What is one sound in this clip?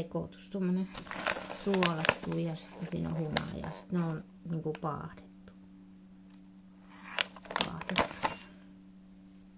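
A plastic snack bag crinkles as it is handled.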